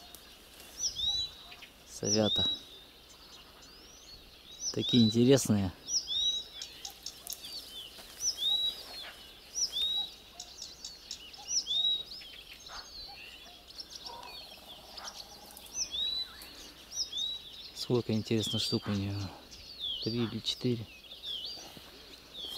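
Birds chirp with short, high, repeated calls from the trees.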